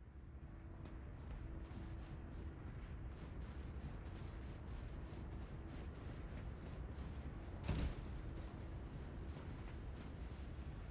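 Footsteps crunch quickly over sandy ground.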